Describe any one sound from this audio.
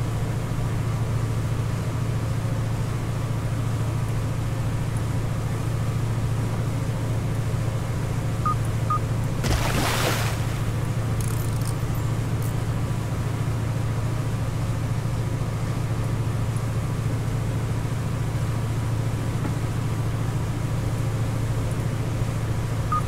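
An outboard motor drones steadily.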